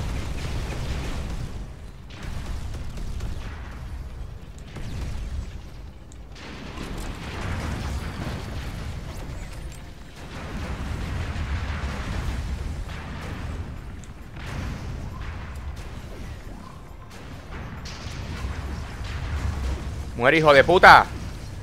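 Laser weapons zap and blast repeatedly.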